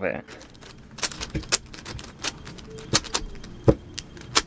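A puzzle cube clicks and rattles as its layers are quickly turned.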